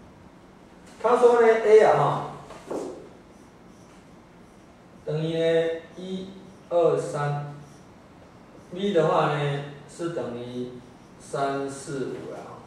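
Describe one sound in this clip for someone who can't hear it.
A man speaks calmly nearby, lecturing in pauses.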